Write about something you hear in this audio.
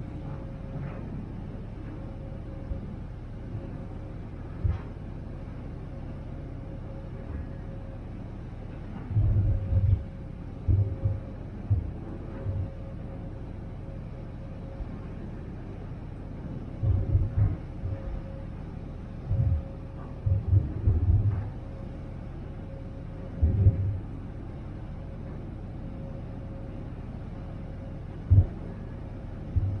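Water churns and rushes in a ferry's wake.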